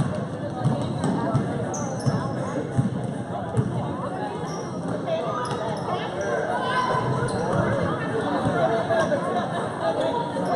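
A crowd of spectators chatters nearby.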